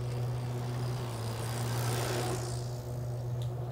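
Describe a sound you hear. A bicycle rolls past close by, its tyres whirring on the path.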